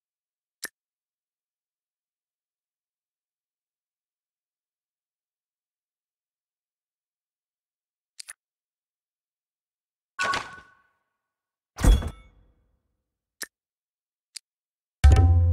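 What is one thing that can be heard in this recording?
Short game menu clicks and chimes sound now and then.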